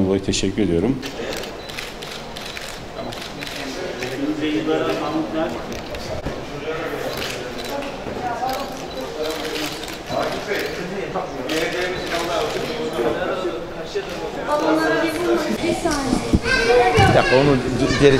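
Children chatter and call out in a room.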